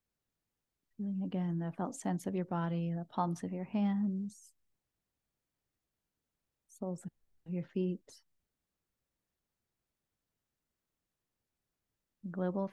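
A young woman speaks slowly and calmly into a close microphone, with long pauses.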